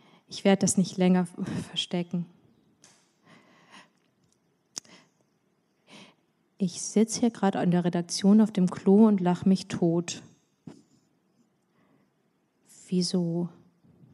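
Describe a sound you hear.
A young woman reads aloud calmly into a microphone, with pauses.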